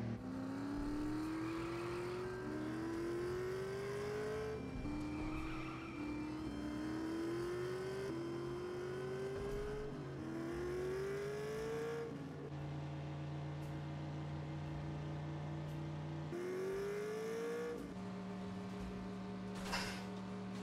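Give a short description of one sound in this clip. A racing car engine revs up again and again, climbing in pitch through each gear change.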